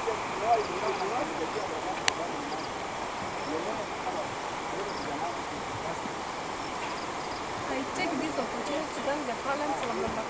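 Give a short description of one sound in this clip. A group of men and women talk among themselves outdoors.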